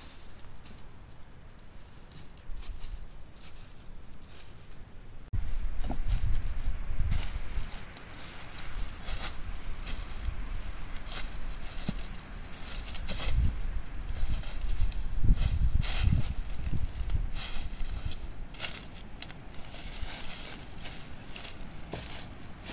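Footsteps crunch on dry leaves and loose rocks.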